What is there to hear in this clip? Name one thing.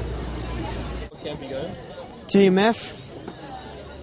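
A teenage boy speaks softly close by.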